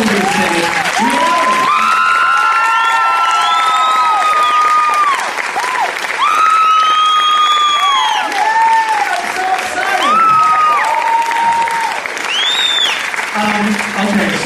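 A crowd cheers and whistles loudly in a large hall.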